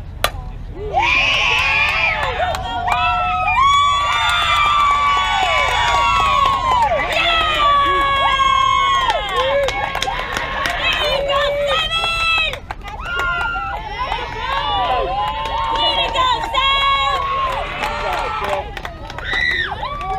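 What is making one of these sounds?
Young girls cheer and scream excitedly nearby.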